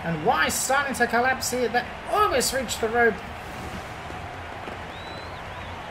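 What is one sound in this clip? A large crowd cheers in a stadium.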